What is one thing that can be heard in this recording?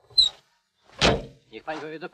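A car bonnet slams shut.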